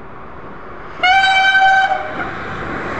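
A high-speed train sounds its horn loudly as it approaches.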